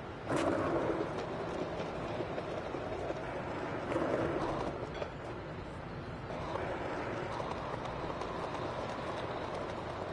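Skateboard wheels roll steadily over pavement.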